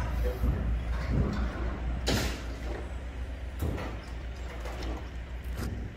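A forklift engine hums nearby.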